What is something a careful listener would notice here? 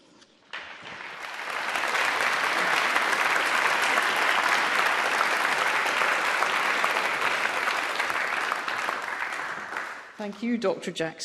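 Applause fills a large hall and slowly dies away.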